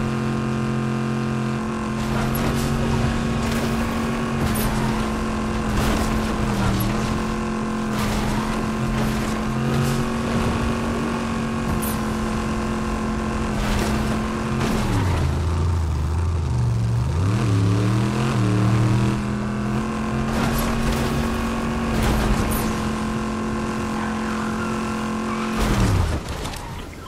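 A car engine roars steadily, dropping low as the car slows and revving up again.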